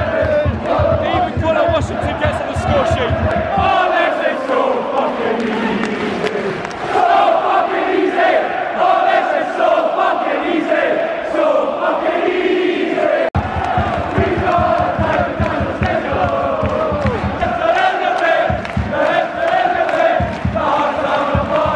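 A large crowd of men sings and chants loudly close by, in a big open stadium.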